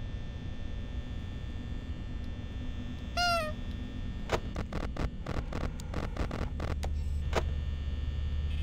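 An electric fan hums steadily.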